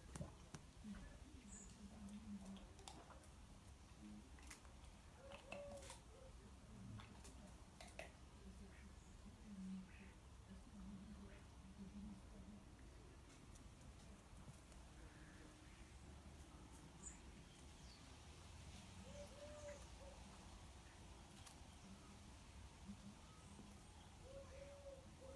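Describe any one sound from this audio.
Small dogs patter across dry leaves outdoors.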